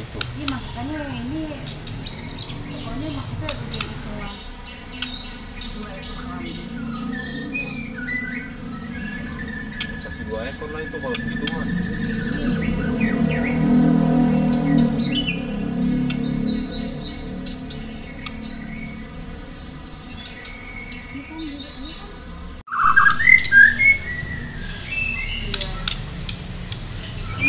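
A songbird sings close by with clear whistles and chirps.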